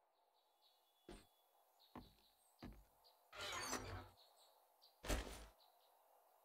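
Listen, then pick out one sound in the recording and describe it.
Blocks thud into place one after another.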